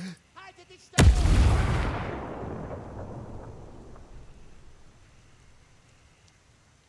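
A grenade explodes with a loud boom that rumbles away slowly.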